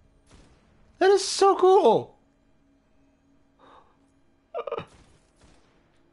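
A young man exclaims with excitement into a close microphone.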